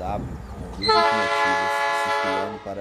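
A train horn blows in the distance.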